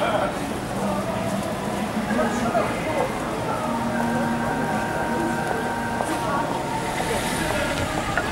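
A car engine hums slowly past close by.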